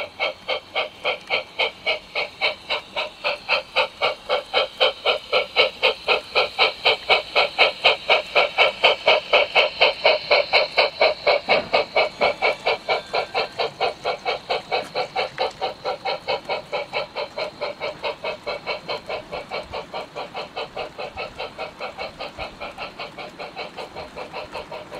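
A model train rolls past with a fast, steady rhythmic clicking that grows louder and then slowly fades.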